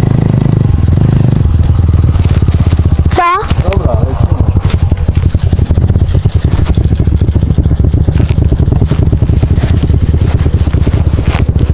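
A dirt bike engine idles and revs loudly close by.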